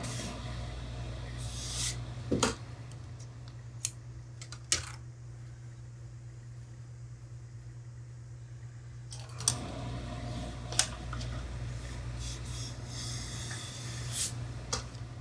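A steam iron hisses against cloth.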